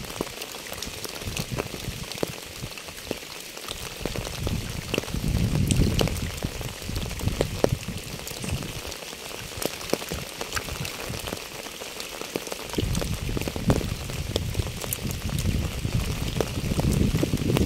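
Rain patters steadily on wet pavement and puddles.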